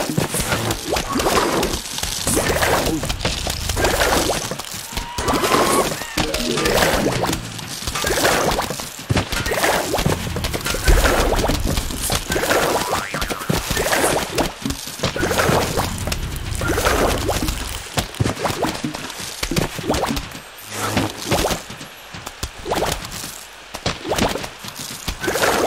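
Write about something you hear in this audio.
Cartoon game sound effects pop and splat rapidly as projectiles hit their targets.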